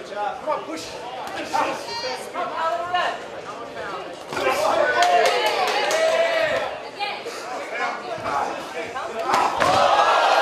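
Gloved punches and kicks thud in quick bursts.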